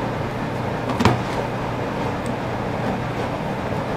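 A screwdriver scrapes and clicks against a plastic tool housing.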